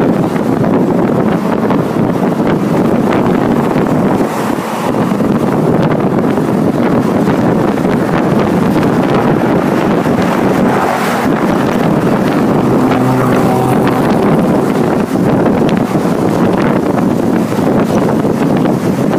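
A vehicle drives along with a steady, noisy rumble.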